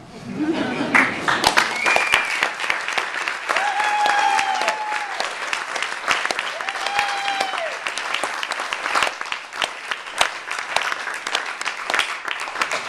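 An audience claps and applauds in a small room.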